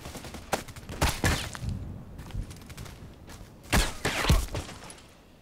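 Rifle shots crack loudly.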